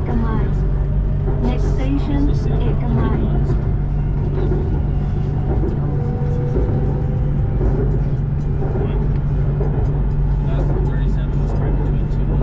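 An elevated train rumbles steadily along its track.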